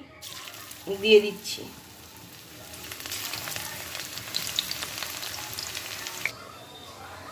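Oil sizzles and crackles as fritters fry.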